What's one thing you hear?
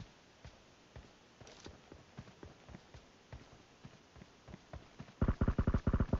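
Footsteps patter quickly over dry ground.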